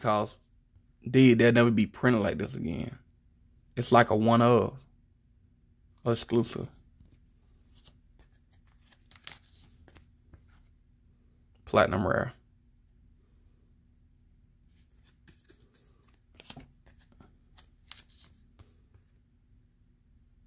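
Trading cards rustle and tap softly as they are handled.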